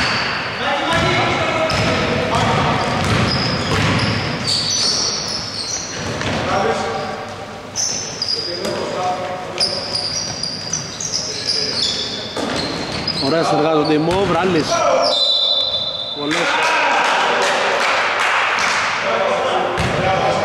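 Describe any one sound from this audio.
Men shout and call out to each other in an echoing hall.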